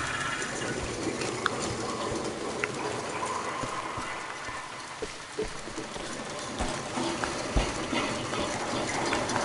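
Water rushes steadily in the background.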